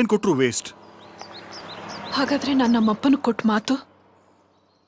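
A woman speaks, close by.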